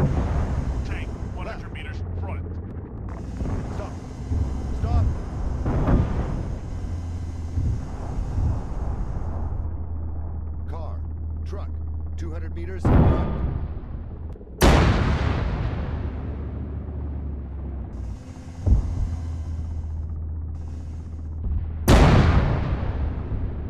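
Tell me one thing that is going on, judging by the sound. Explosions boom loudly, one after another.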